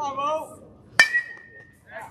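A metal bat cracks against a baseball.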